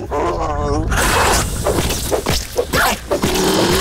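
A blade strikes a large insect with wet, crunching hits.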